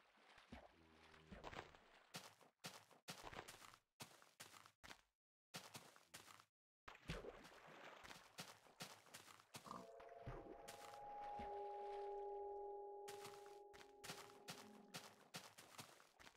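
Footsteps thud on grass and earth.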